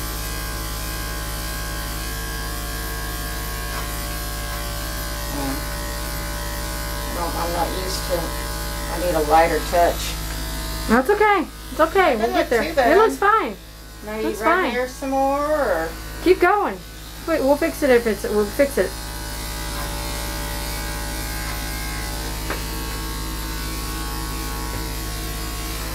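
Electric clippers hum steadily.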